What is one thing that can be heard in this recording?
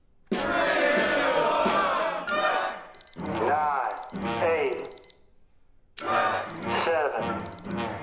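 A small ensemble of strings, winds and percussion plays music in a hall.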